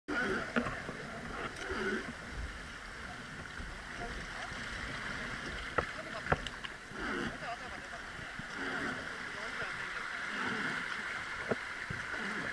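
River water rushes and splashes close by.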